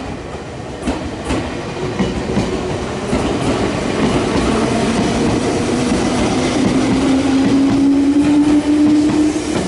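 An electric train's motor whines, rising in pitch as it speeds up.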